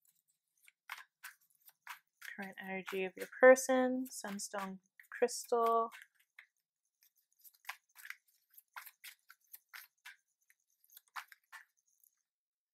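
Playing cards riffle and flick softly as they are shuffled.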